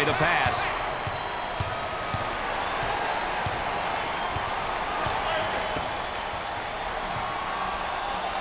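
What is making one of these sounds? A basketball thumps as it is dribbled on a wooden floor.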